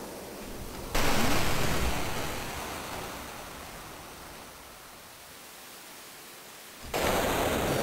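Thunder rumbles loudly.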